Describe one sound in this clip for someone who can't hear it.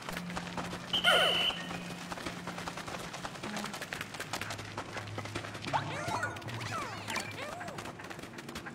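Small cartoon creatures chirp and squeak in high voices.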